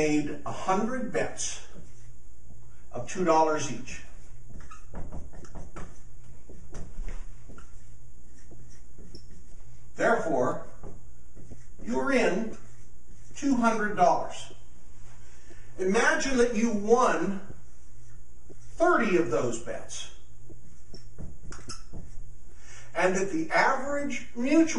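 A middle-aged man speaks calmly and clearly, close by, through a microphone.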